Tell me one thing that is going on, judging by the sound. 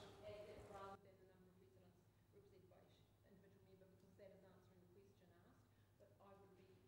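Another man speaks quietly through a microphone.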